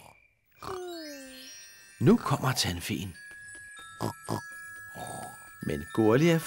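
Magic sparkles twinkle and chime.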